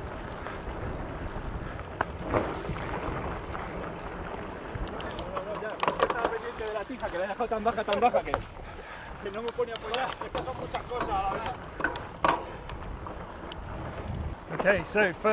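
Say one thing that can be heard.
Bicycle tyres rumble over a bumpy dirt trail.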